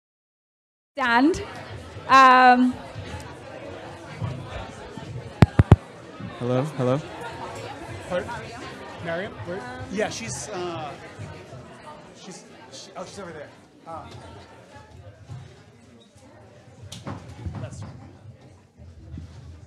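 A crowd of people chat and murmur in a room.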